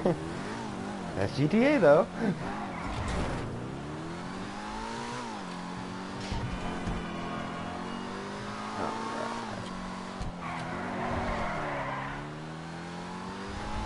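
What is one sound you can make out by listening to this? A car engine revs and drones steadily, rising and falling in pitch.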